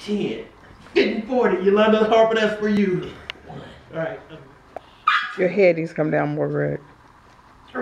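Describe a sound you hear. A man laughs close by.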